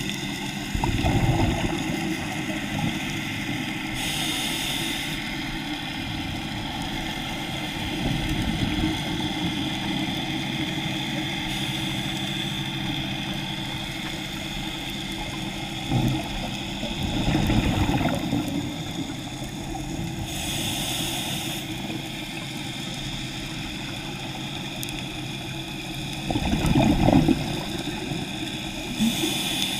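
Water rushes and hisses steadily, heard muffled underwater.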